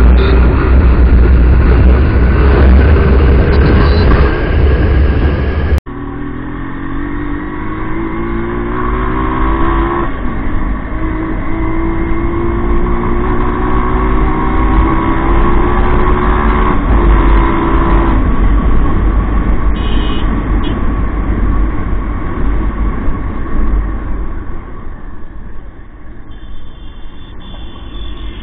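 Wind rumbles loudly against the rider.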